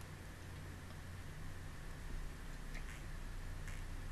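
A woman gulps water close to a microphone.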